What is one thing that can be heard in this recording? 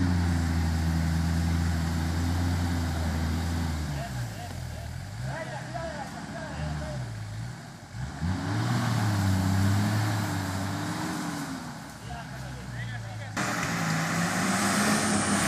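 A truck engine revs and labours as it drives through mud.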